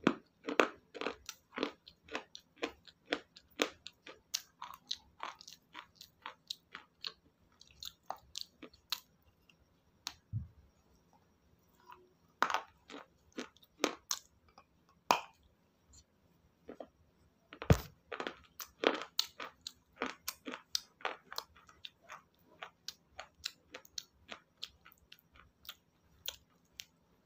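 A woman chews something crunchy close to a microphone, with sharp cracking crunches.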